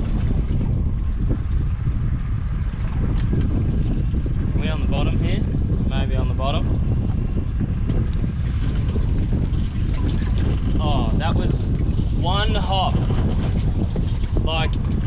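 Wind blusters steadily across the open water.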